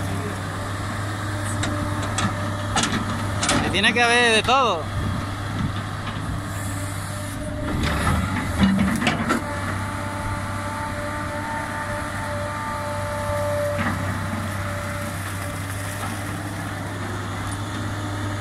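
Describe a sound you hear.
Dirt and clods tumble from an excavator bucket.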